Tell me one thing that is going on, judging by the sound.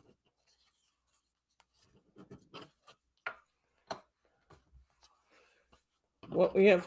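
Paper rustles and taps softly against a table.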